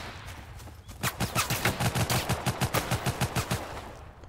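Footsteps crunch quickly through leaves and undergrowth.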